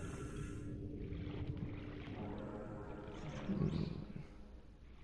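A deep, muffled underwater rumble goes on steadily.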